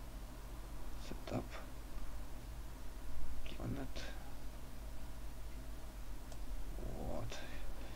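A man murmurs a few short words close to a microphone.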